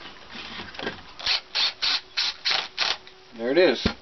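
A cordless impact driver rattles in short bursts.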